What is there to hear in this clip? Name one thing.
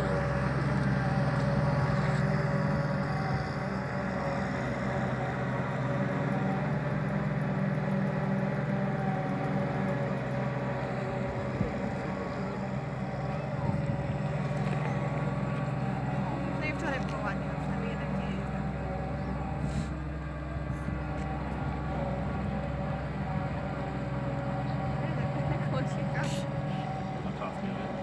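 A combine harvester's diesel engine rumbles steadily at a distance, outdoors.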